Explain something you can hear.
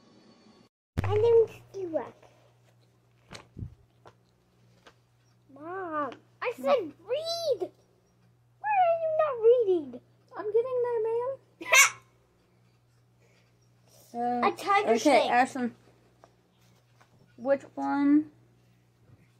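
A young girl talks and laughs with animation close by.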